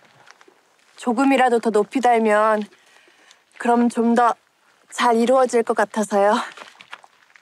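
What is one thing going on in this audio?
A young woman speaks brightly, with animation.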